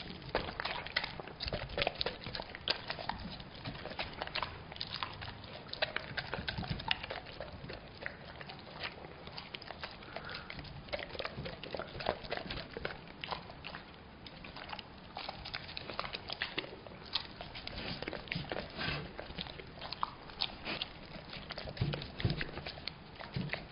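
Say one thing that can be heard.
A dog licks and laps wetly at food close by.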